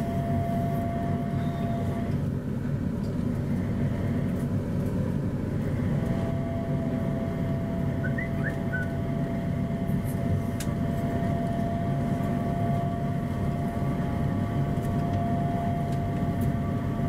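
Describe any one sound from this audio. A train's motor whines with a steady high tone.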